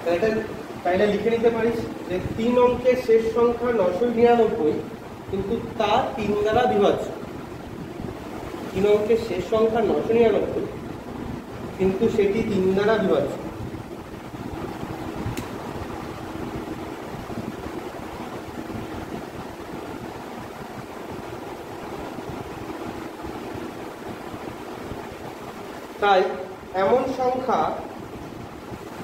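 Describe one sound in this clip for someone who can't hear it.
A young man explains calmly, close by.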